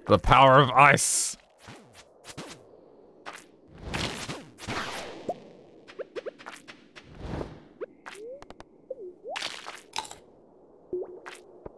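Game sound effects chime, blip and knock in quick bursts.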